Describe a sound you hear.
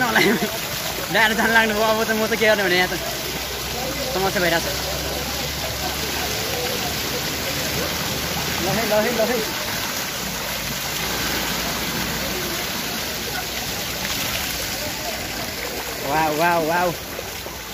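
Water splashes as people wade through a shallow pool.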